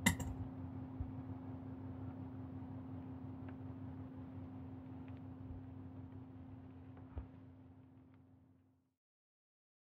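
A singing bowl rings with a steady low hum and slowly fades away.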